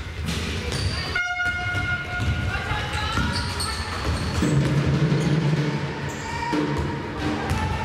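Sneakers squeak on a court as players run.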